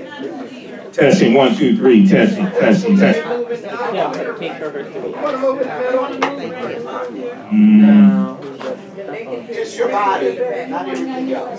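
A man speaks with animation through a microphone and loudspeaker in a room with some echo.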